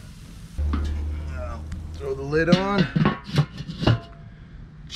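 A metal lid clanks shut on a grill.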